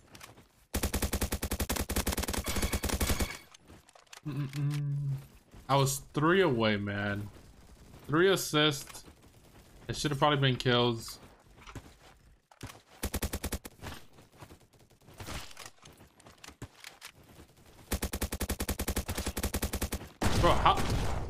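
Rapid bursts of gunfire rattle.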